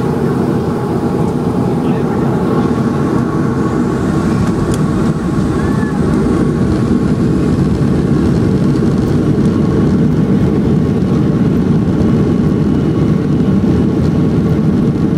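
Airliner wheels rumble over the runway.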